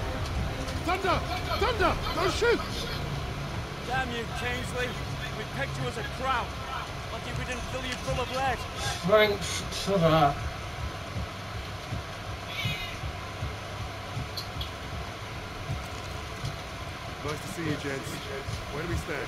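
Men talk and shout urgently nearby.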